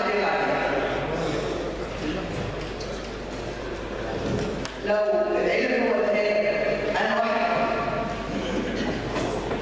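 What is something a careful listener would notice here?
An older woman speaks calmly and steadily into a handheld microphone.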